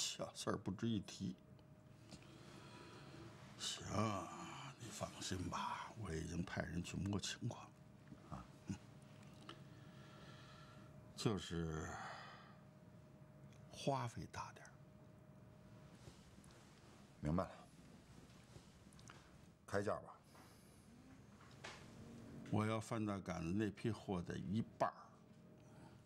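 An older man speaks calmly and slowly, close by.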